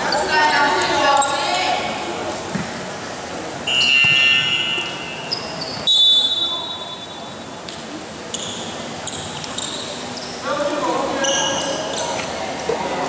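Young boys shout to each other in a large echoing hall.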